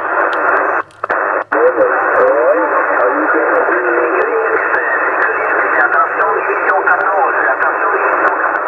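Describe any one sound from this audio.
Steady radio static hisses from a receiver.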